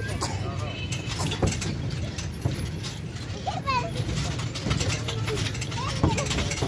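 Children shout and squeal playfully outdoors.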